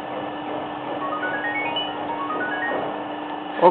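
A mobile phone beeps in a rising series of short tones as keys are pressed.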